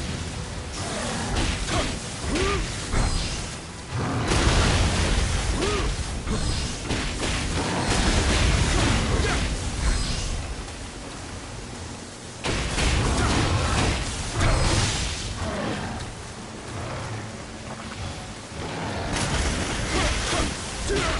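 Swords clash and slash in quick strikes.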